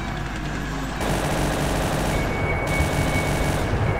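An explosion bursts close by.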